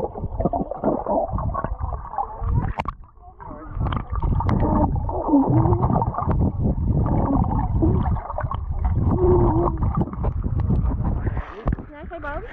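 Water rumbles and bubbles in a muffled way underwater.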